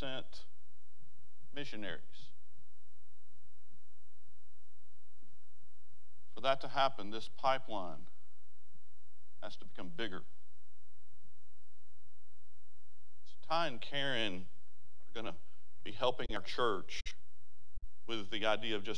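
An elderly man speaks calmly through a microphone, in short bursts with pauses.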